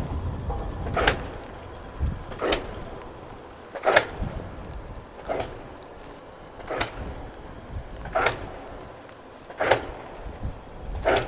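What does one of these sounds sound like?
Wind blows outdoors in gusts.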